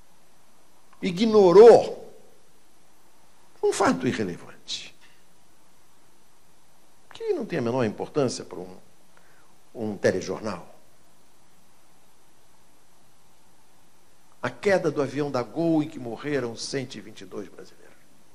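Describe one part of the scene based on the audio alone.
An older man speaks through a microphone in short, deliberate bursts with pauses between.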